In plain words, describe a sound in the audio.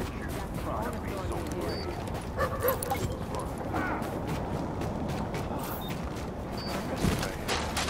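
Boots crunch on packed snow.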